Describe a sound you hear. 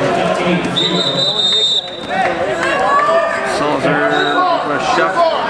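A crowd of spectators shouts and cheers in an echoing hall.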